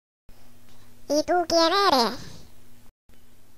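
A young girl shouts angrily.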